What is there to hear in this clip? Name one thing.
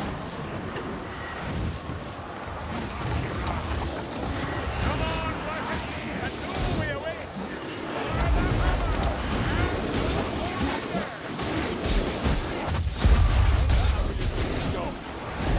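Fiery blasts whoosh and crackle.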